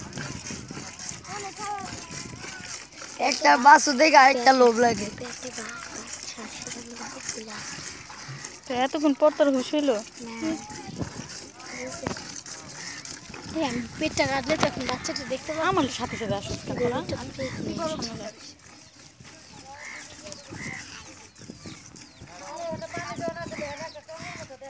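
Children talk and call out excitedly close by.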